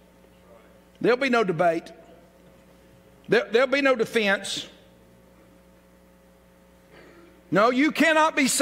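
An elderly man speaks with animation through a microphone, in short bursts with pauses.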